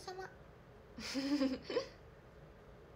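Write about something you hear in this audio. A young woman laughs briefly.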